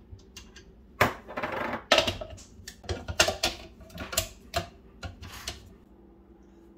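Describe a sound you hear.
Plastic and metal parts clatter and click as they are fitted together.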